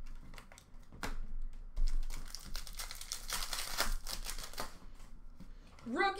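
Plastic wrappers rustle and click as cards are handled close by.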